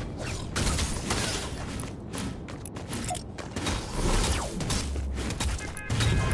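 A pickaxe whooshes through the air in quick swings.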